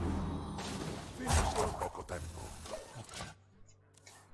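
A game's explosion effect bursts loudly.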